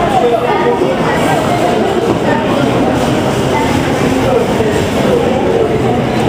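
A crowd of people talks and murmurs nearby.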